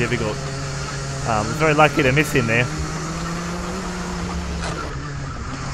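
Several go-kart engines buzz and rev as the karts race past.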